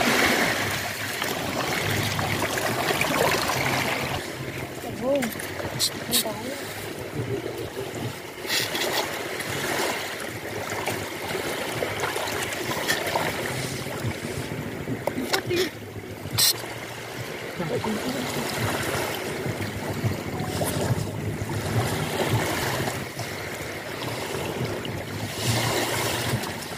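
A large lizard tears and chews wet flesh.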